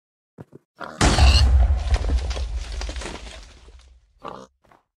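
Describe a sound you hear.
A futuristic gun fires with a loud blast.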